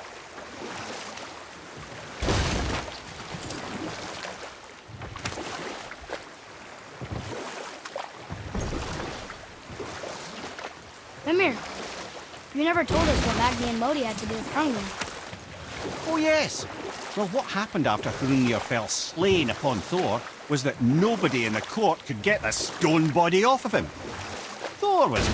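Oars splash through water in a slow rowing rhythm.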